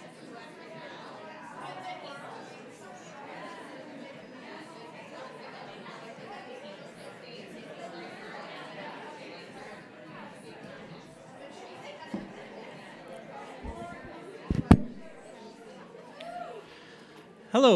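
An audience murmurs and chats in a hall.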